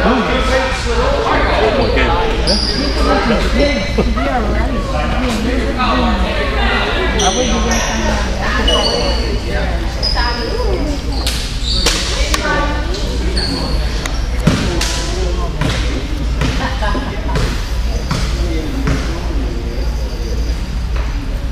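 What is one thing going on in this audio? A crowd of children and adults chatter in a large echoing gym.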